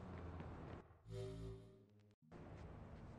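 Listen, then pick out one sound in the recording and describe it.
A soft musical chime rings out.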